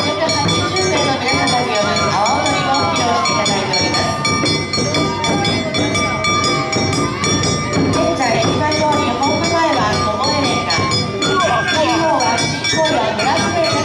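Large drums beat a steady, lively rhythm.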